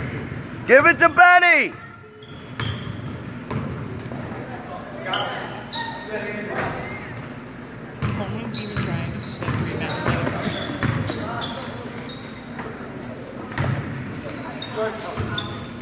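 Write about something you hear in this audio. Young players shout and call out across an echoing gym.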